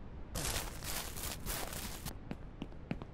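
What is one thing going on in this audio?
Footsteps run swishing through grass.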